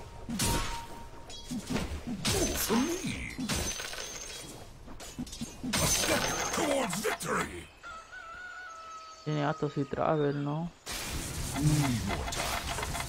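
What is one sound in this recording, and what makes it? Game sound effects clash and chime.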